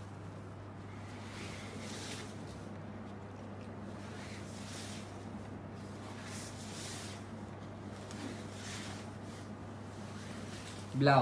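Silk fabric rustles softly as it is unfolded and spread out by hand.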